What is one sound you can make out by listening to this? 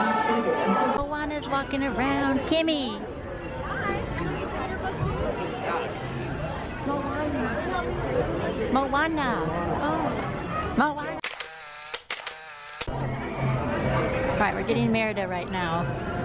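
A crowd of men, women and children chatters nearby outdoors.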